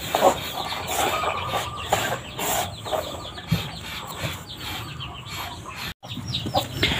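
Hands stir and scrape dry grain feed in a bucket.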